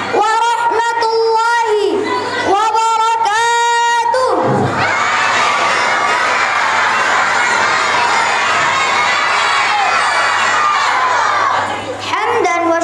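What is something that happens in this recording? A young boy chants melodically in a long, held voice through a microphone.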